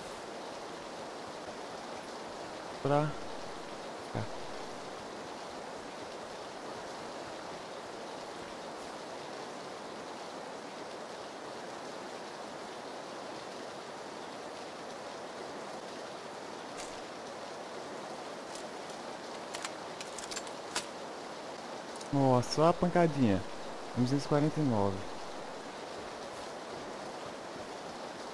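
Footsteps rustle softly through grass.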